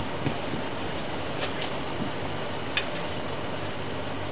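A broom scrapes and knocks against a wooden stage floor in a large hall.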